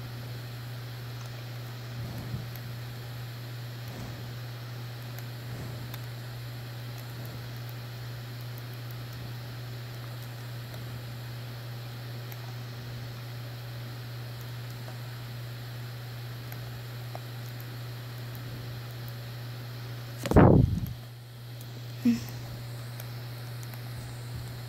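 Game sound effects play quietly from a handheld console's speaker.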